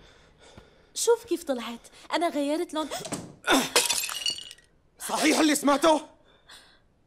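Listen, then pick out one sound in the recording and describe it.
A young woman speaks tensely nearby.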